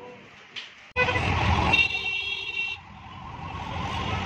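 Traffic rumbles around an auto-rickshaw outdoors.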